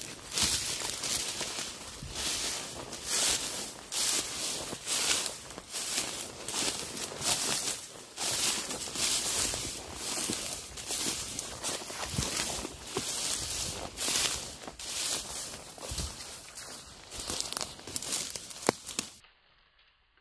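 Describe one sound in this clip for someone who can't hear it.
Dry grass and reeds rustle and crunch underfoot as someone walks through them.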